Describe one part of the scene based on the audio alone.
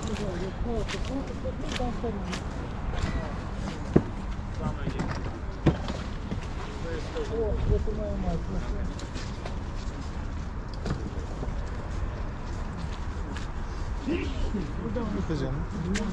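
Men and women talk nearby outdoors.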